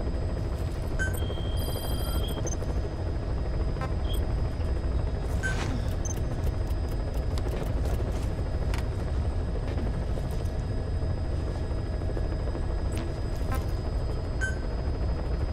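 Short electronic beeps and clicks sound now and then.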